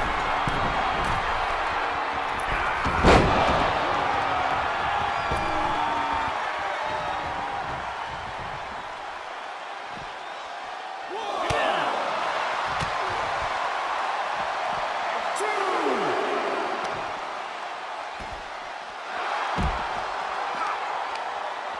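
A large crowd cheers loudly in an arena.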